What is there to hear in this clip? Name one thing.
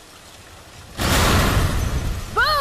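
A car explodes with a loud blast.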